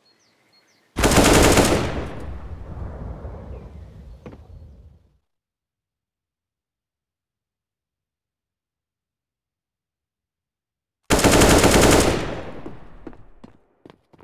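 Gunshots ring out in loud bursts and echo away.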